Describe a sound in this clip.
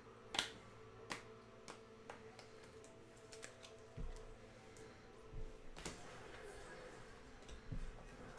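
Plastic card sleeves click and rustle in someone's hands.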